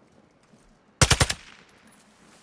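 A short, rapid burst of gunfire rings out close by.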